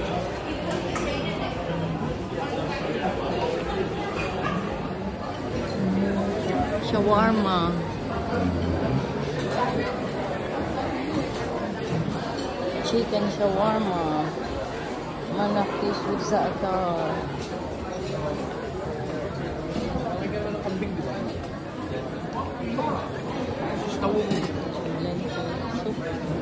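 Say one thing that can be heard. A crowd of men and women chatter in a busy, echoing room.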